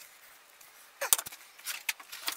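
Leather pieces knock softly as they are laid down on a wooden board.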